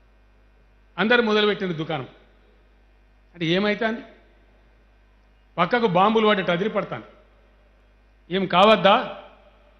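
An older man speaks into a microphone in short bursts, with pauses between.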